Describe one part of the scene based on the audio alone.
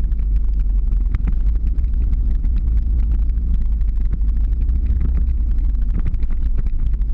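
Wind rushes loudly and steadily past the microphone.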